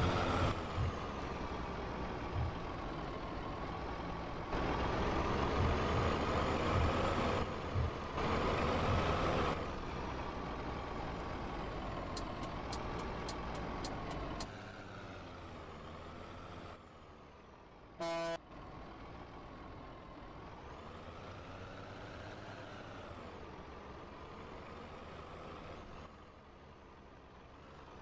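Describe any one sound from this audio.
A truck engine hums steadily and changes pitch as the truck moves.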